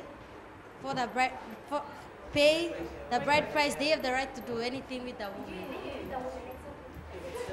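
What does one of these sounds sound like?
A teenage girl speaks calmly into a microphone close by.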